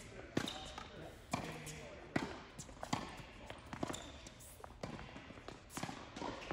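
Tennis shoes squeak on the court.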